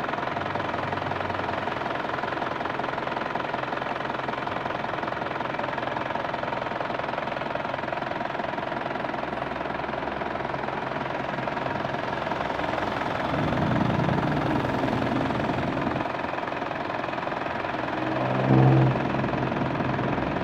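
A diesel engine idles steadily with a loud rattling hum.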